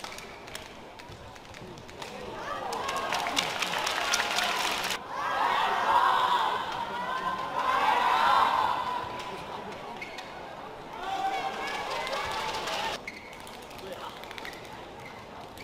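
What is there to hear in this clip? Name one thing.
A shuttlecock is struck sharply with a racket.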